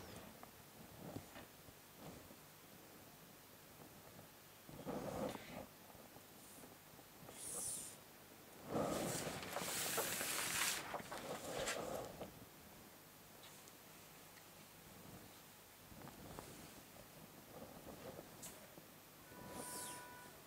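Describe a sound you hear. A pencil scratches along a ruler on paper.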